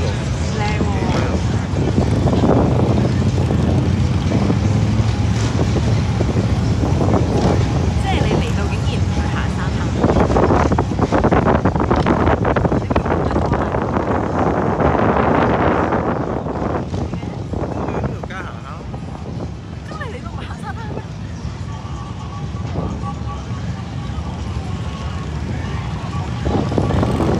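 Wind roars loudly past a microphone outdoors.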